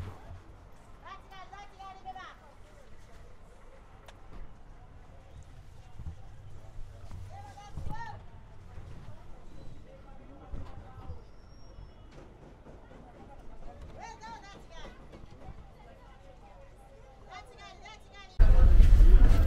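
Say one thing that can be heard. Men's voices chatter nearby on a street.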